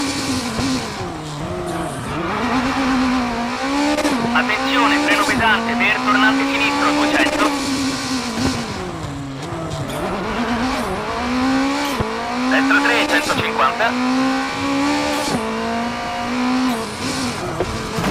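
A rally car engine revs hard, rising and dropping through gear changes.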